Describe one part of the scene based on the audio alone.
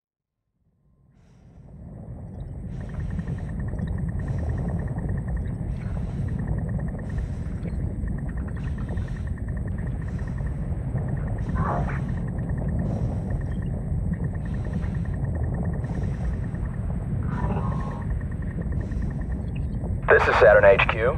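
A low, steady rumble fills a landing pod's cabin, rising in from silence.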